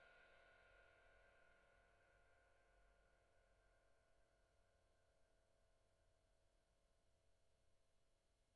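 Struck metal bars ring out and slowly die away in a large echoing hall.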